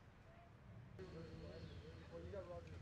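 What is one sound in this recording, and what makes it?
Men talk quietly at a distance outdoors.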